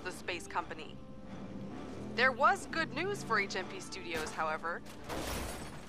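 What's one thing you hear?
A woman speaks calmly, as if reading the news over a broadcast.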